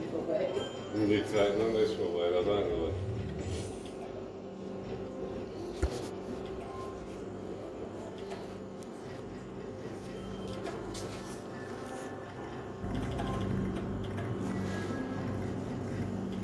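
Slot machines play electronic jingles and chimes nearby.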